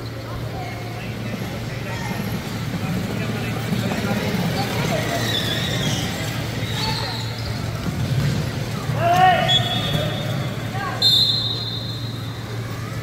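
Young people call out to each other in a large echoing hall.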